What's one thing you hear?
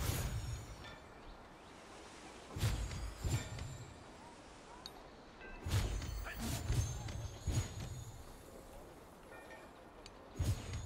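Blades slash and strike with heavy thumping bursts.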